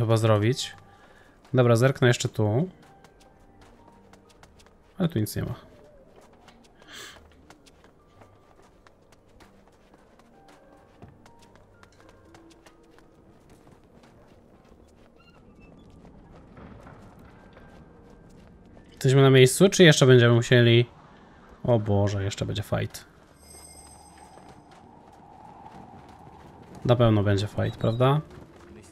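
Footsteps crunch quickly over snow.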